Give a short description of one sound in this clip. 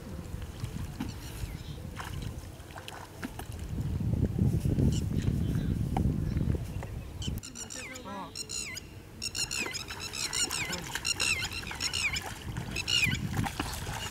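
Feet splash through shallow muddy water.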